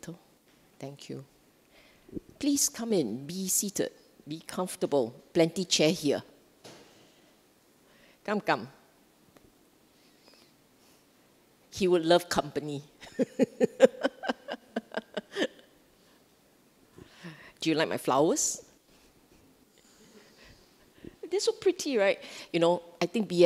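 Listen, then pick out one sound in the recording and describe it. A middle-aged woman speaks calmly into a microphone, pausing often.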